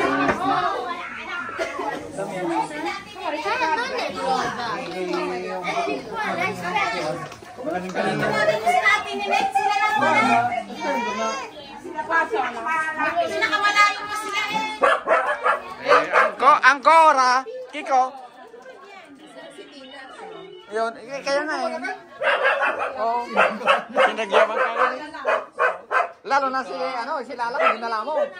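Several men and women talk and laugh together nearby.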